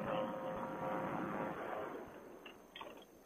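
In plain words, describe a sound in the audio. A motor drones loudly, then winds down.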